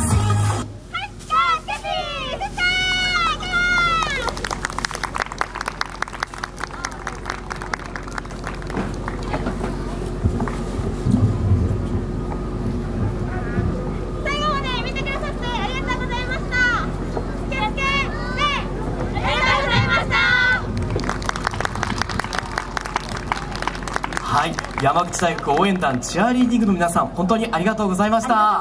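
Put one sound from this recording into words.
Young women speak in turn with cheerful, high voices through a loudspeaker outdoors.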